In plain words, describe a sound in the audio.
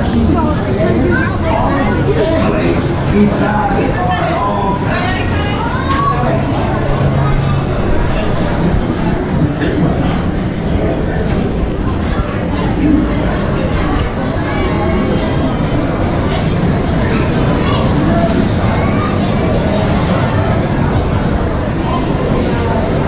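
A crowd of people chatters nearby, echoing under a roof.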